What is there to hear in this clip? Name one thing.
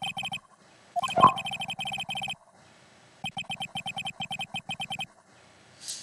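A game's text beeps in quick repeated blips.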